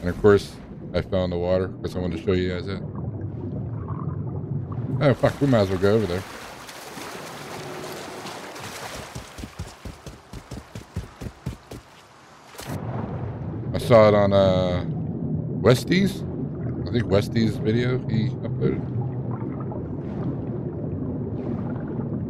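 Water splashes and gurgles around a swimmer.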